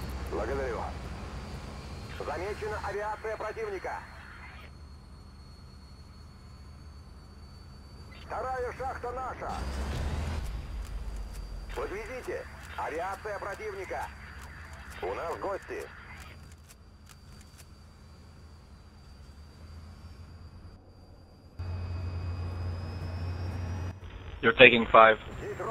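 A helicopter engine drones steadily.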